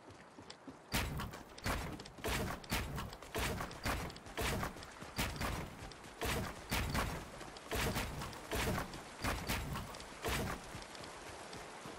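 Building pieces snap into place in a video game with quick clicks.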